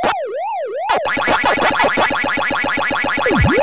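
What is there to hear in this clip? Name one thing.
A rapid, high electronic warble plays as game enemies turn blue.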